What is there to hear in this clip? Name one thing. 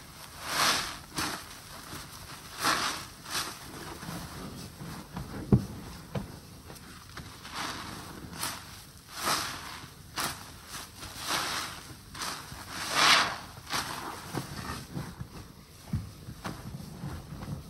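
Soapy water sloshes and splashes in a basin.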